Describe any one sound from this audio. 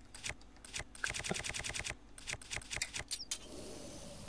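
Short menu ticks click in quick succession.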